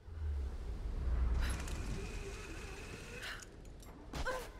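A rope whirs as a woman slides down a zip line.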